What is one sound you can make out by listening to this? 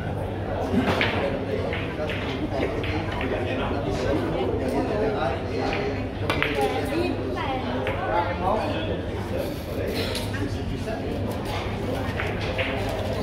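Men chat quietly in the background.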